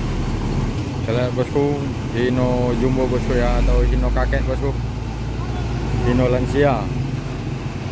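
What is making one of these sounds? A man talks loudly nearby, outdoors.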